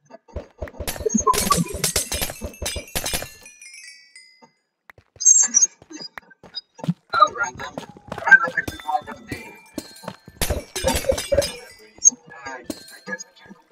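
Stone and crystal blocks crunch and shatter in quick bursts.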